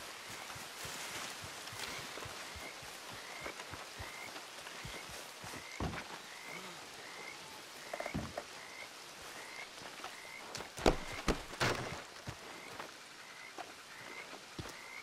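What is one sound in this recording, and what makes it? Footsteps crunch steadily through grass and brush.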